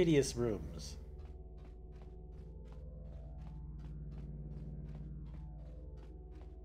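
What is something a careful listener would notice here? Footsteps tap steadily on a metal floor.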